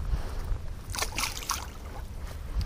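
A fish splashes into shallow water.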